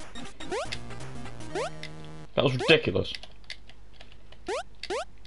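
Short rising electronic blips sound as a game character jumps.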